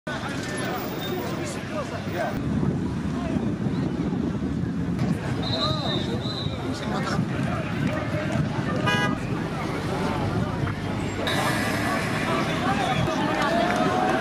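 A large outdoor crowd murmurs and chatters throughout.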